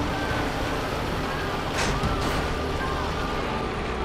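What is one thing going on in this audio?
A tank crashes into cars and barriers.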